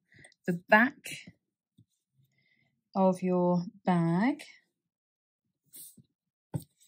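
Cloth rustles softly as hands fold it.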